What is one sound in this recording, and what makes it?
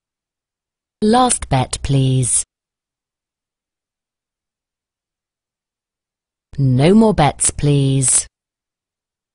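A man speaks briefly and calmly.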